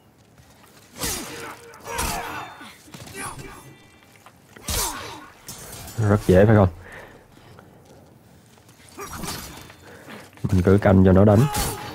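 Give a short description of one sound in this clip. Blades swing and strike with sharp clashes.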